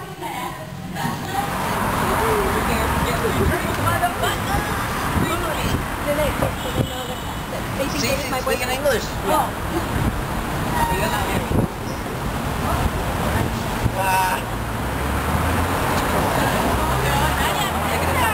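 Voices chatter on a busy street outdoors.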